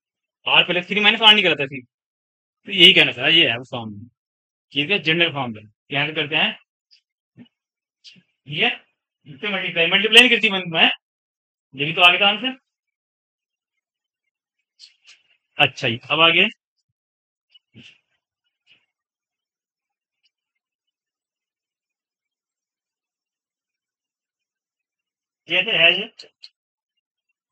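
A man speaks calmly and clearly, explaining, close to a microphone.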